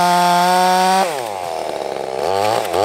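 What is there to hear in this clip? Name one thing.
A chainsaw engine drops to a sputtering idle and briefly revs.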